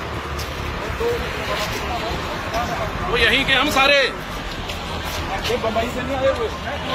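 Several men talk and shout outdoors close by.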